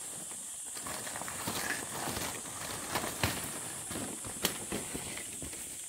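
A loaded wicker basket creaks as a woman hoists it onto her back.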